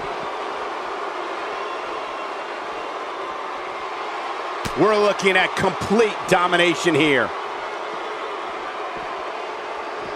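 A large crowd cheers and shouts steadily.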